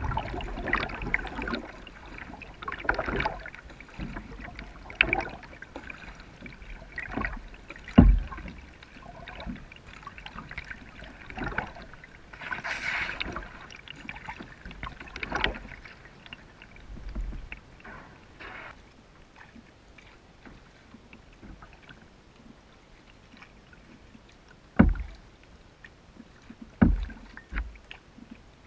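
A kayak paddle dips and splashes in calm water.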